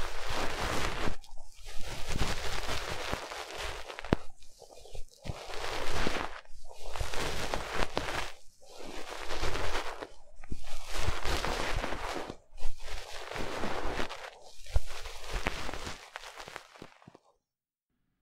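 A young woman whispers very close to a microphone.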